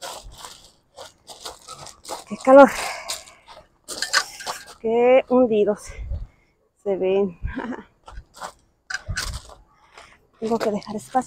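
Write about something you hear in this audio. Boots crunch on gravel.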